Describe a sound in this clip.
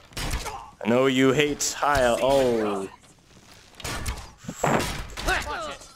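A sword strikes an opponent in a close fight.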